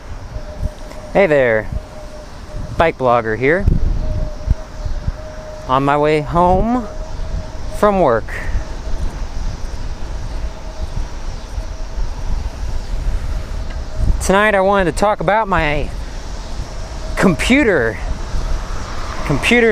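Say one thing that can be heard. Wind rumbles steadily over a moving bicycle.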